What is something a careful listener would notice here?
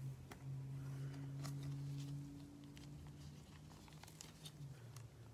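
A plastic card sleeve rustles and crinkles softly in gloved hands.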